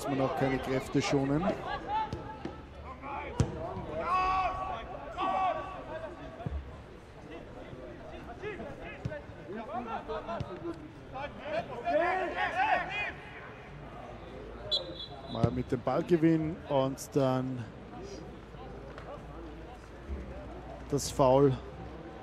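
Men shout and call out to each other across an open pitch.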